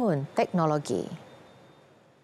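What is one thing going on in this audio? A woman speaks clearly into a microphone like a news presenter.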